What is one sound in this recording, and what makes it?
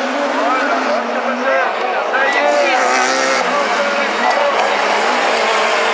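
Racing car engines roar and rev as cars speed around a track.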